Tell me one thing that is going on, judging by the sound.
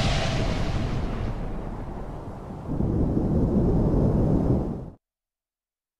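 A huge creature lets out a deep, rumbling roar.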